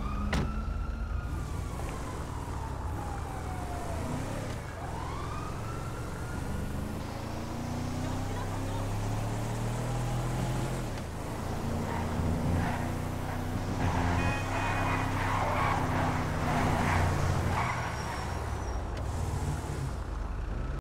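Tyres roll over the road.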